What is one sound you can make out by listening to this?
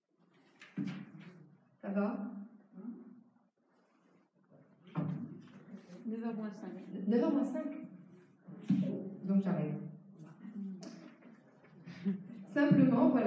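An elderly woman speaks calmly into a microphone in an echoing room.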